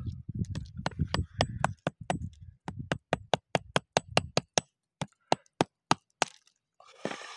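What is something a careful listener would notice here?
Stones knock sharply against each other in quick, even taps.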